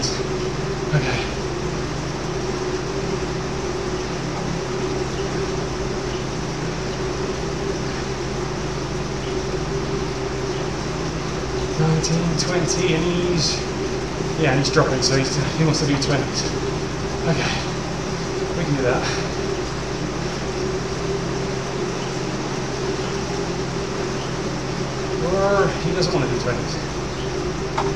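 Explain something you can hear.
A trainer whirs steadily under a pedalling bike.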